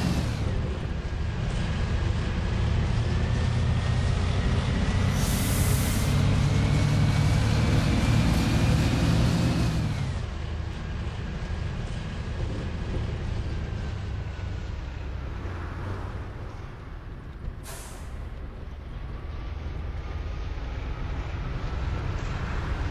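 A bus engine drones and rises in pitch, then drops and idles lower.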